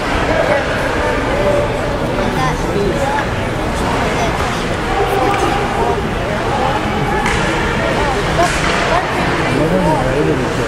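Hockey sticks clack against pucks.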